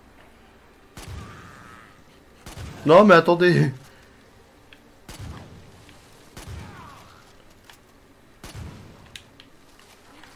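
Gunshots bang in short bursts.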